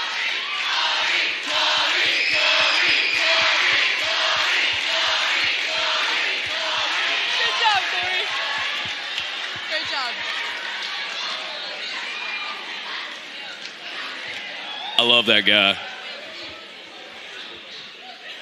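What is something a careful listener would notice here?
A crowd cheers and whoops loudly, then gradually quiets.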